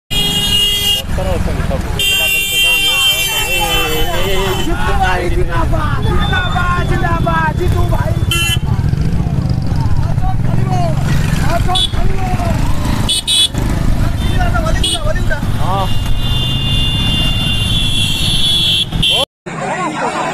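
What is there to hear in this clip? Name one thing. Small motorcycles ride past one after another.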